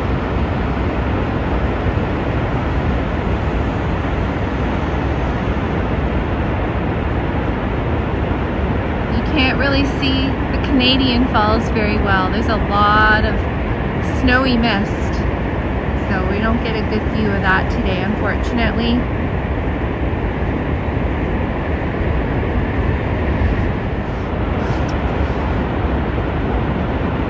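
A waterfall roars steadily outdoors.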